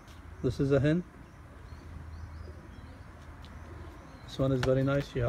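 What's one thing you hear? A pigeon coos loudly close by.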